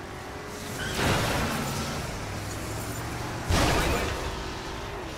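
A car crashes into another car with a metal bang.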